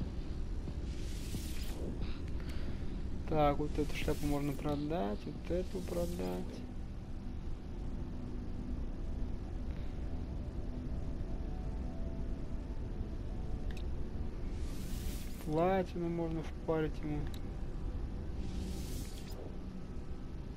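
Soft electronic whooshes sound now and then.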